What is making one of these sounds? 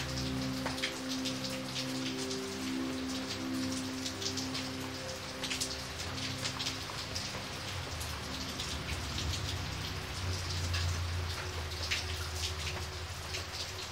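Heavy rain splashes onto a puddle outdoors.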